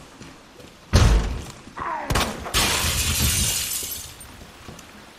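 Glass shatters loudly as a window breaks.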